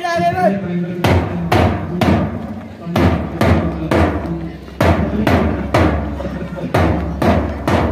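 A bass drum beats a steady marching rhythm.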